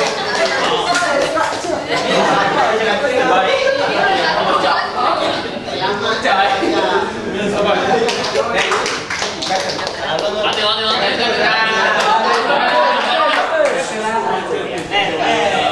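A crowd of young people chatters and laughs loudly in a room.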